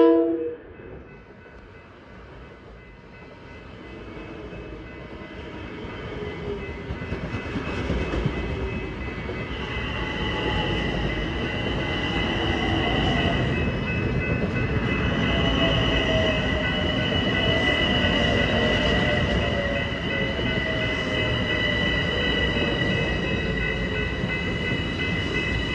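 A train rumbles past close by, wheels clattering on the rails.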